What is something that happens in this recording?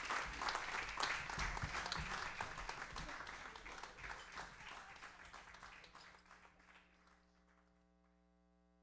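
A small jazz band plays and fades out.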